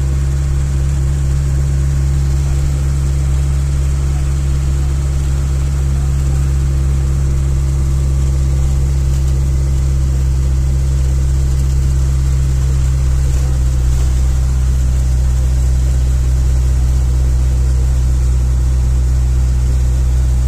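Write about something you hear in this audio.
A bus engine drones loudly and steadily from inside the cabin.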